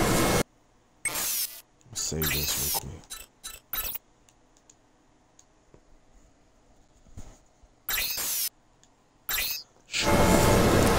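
Menu clicks and chimes sound in quick bursts.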